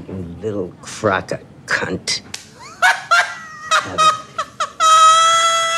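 A woman talks excitedly close by.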